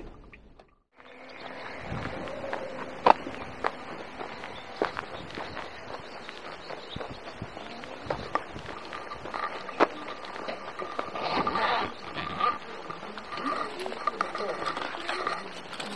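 Footsteps crunch and scuff on gravel and pavement.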